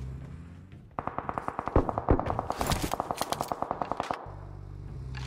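Footsteps clang quickly across a metal roof.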